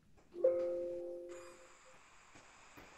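A computer alert chimes once and fades.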